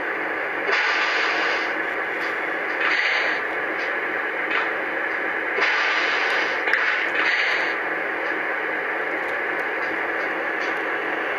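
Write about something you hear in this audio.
An O-gauge model diesel locomotive rolls slowly along three-rail track.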